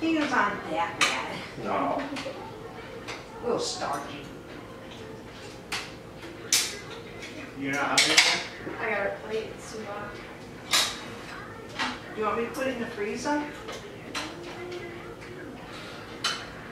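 Utensils clink against pots and dishes.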